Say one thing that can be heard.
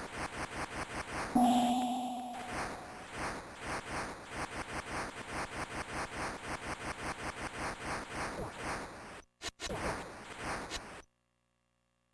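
Rapid electronic arcade game shots fire over and over.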